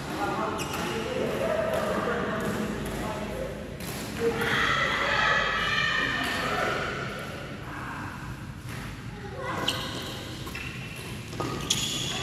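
A badminton racket strikes a shuttlecock with a sharp pop.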